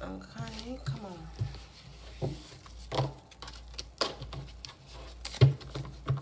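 Cards slide and shuffle on a table.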